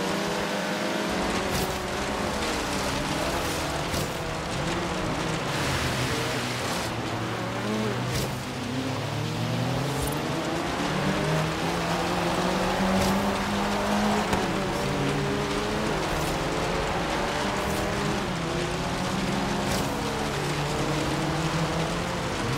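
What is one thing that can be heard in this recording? Tyres crunch and skid on gravel.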